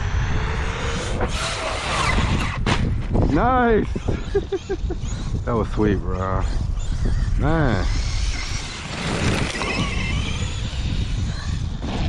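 The electric motor of a radio-controlled 4x4 truck whines, rising and falling in pitch as it revs.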